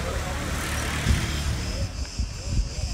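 A crowd murmurs and chatters nearby.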